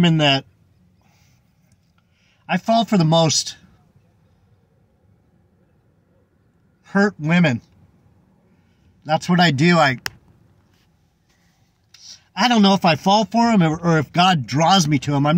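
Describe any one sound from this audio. A middle-aged man talks calmly and close by, in short bursts with pauses.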